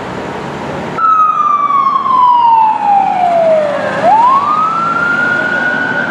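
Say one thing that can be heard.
A fire truck siren wails loudly, falling and then rising again.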